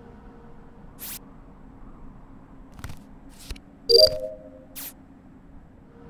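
A card reader gives an electronic beep as a card is swiped.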